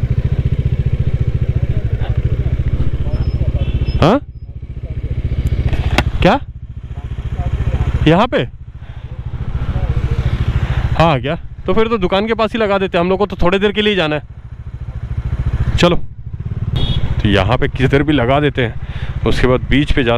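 A motorcycle engine idles close by with a steady, rapid putter.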